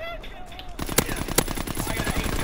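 Sharp gunshots crack close by.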